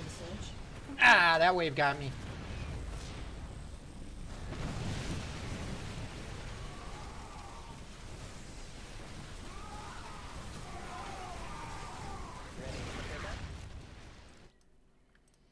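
Battle sounds of gunfire and explosions rumble on in a game.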